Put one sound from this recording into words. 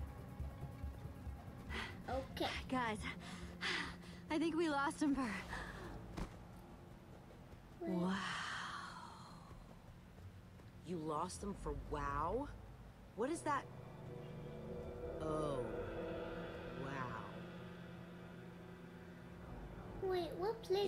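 A young girl talks close to a microphone.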